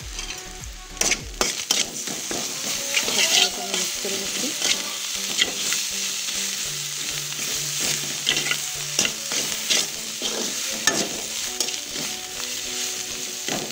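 A metal spatula scrapes and clinks against a pan.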